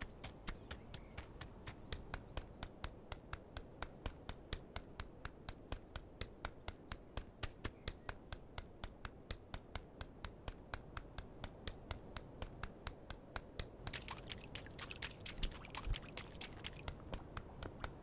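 Small webbed feet patter quickly and evenly on pavement.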